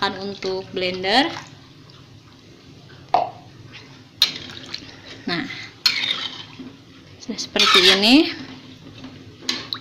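A ladle scrapes and clinks against a metal pot.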